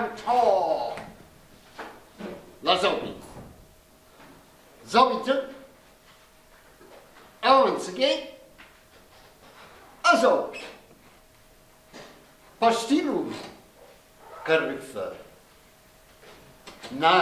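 A man speaks in short bursts with long pauses.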